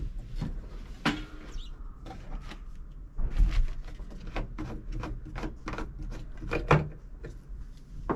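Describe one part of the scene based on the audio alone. A plastic siphon tube rattles and knocks against a plastic fuel can.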